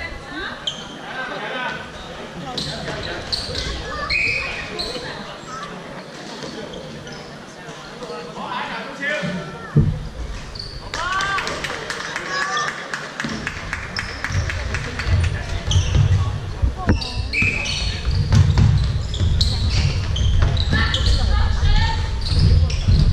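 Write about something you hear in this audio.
Young men shout and call out to each other from a distance in a large echoing hall.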